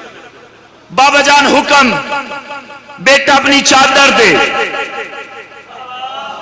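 A young man recites loudly and passionately through a microphone in an echoing hall.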